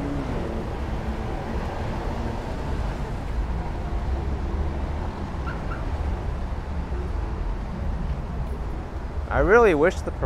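Traffic rumbles low and steady nearby.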